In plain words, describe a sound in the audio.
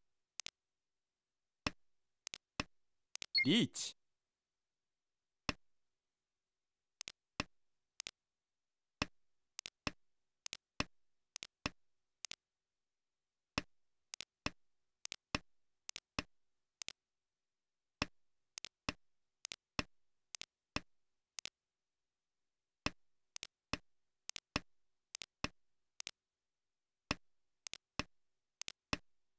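Game tiles click sharply onto a table, one at a time.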